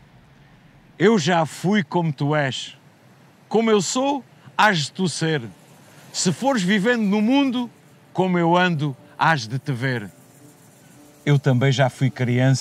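An elderly man recites dramatically, close to a microphone.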